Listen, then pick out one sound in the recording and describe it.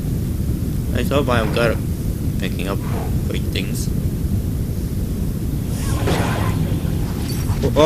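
A large beast snarls and growls.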